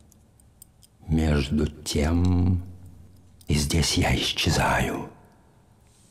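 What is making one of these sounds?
A man speaks slowly and deliberately in a low, close voice.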